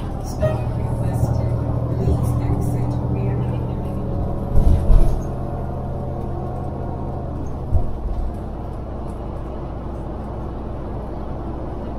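A vehicle's engine hums steadily as it drives along.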